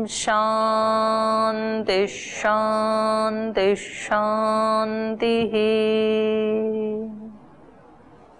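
A middle-aged woman chants long, steady tones close to a microphone.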